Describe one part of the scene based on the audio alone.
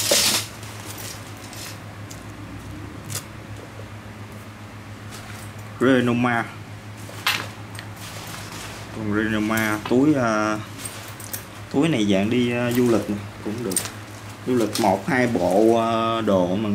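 A fabric bag rustles.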